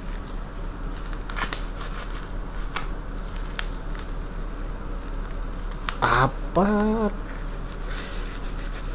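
Plastic wrapping crinkles and rustles as hands pull at it.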